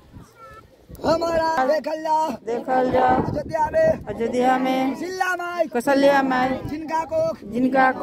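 A man chants loudly and steadily close by, in long sung tones.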